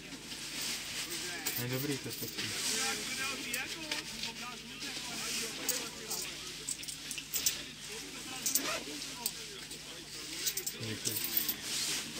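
Men standing nearby chat quietly.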